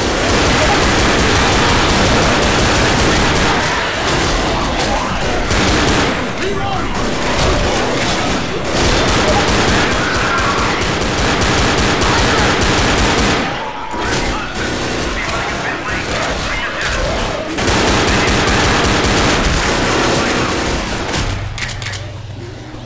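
Gunfire rattles rapidly and loudly.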